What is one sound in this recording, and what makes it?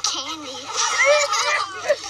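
Boys laugh.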